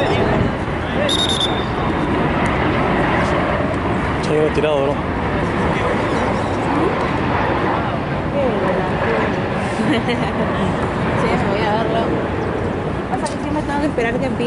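Men shout to each other across an open playing field.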